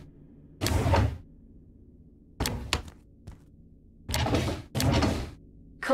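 A wooden drawer slides open.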